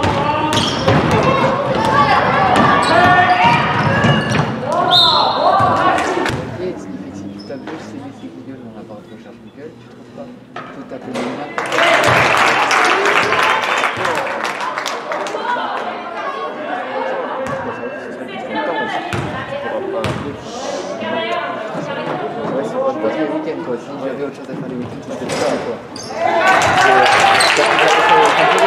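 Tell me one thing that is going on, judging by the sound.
Spectators shout and cheer in a large echoing hall.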